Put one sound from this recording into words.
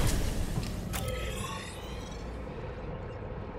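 A menu opens with a short electronic whoosh.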